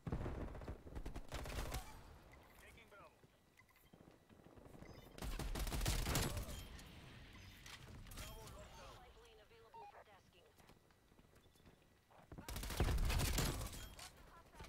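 Gunfire rattles in loud rapid bursts.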